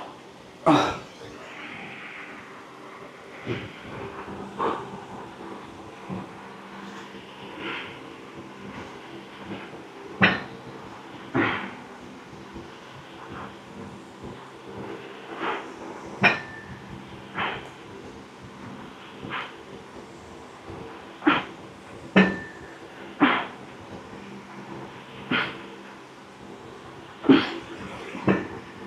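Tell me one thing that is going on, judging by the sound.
A man breathes out sharply with effort during exercise.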